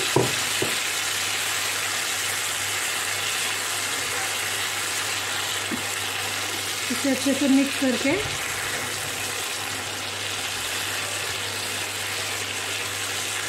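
Food sizzles steadily in a frying pan.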